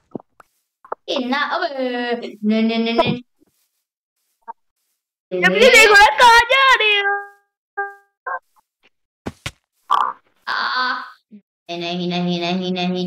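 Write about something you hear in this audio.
A boy talks with animation, close to a microphone.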